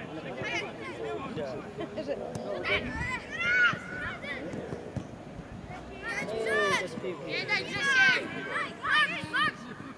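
A ball is kicked with dull thuds.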